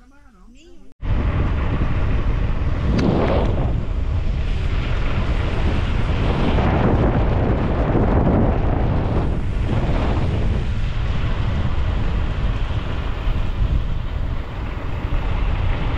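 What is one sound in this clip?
Wind rushes loudly and steadily against the microphone.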